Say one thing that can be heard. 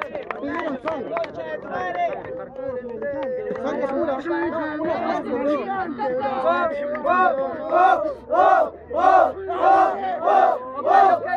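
A young man raps rhythmically and forcefully, close by.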